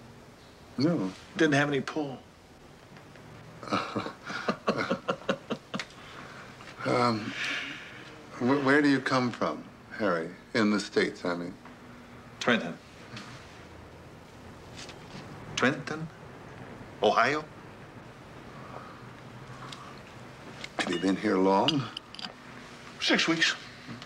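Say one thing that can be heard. Middle-aged men talk calmly nearby in a conversation.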